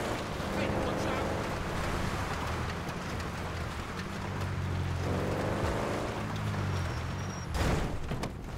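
A car engine hums as a car drives slowly.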